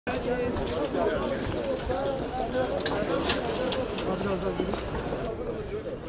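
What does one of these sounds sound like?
Footsteps of a walking group shuffle on pavement.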